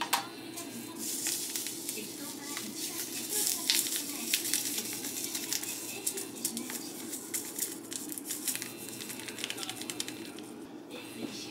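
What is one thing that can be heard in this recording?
Dried granules pour from a rustling packet and patter into a metal pot.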